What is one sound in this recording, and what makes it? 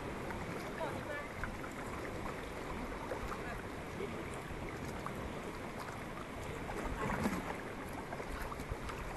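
Paddles splash and dip into calm water.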